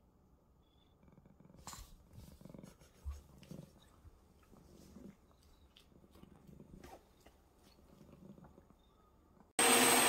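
A cat licks another cat's fur with soft, wet, rhythmic sounds.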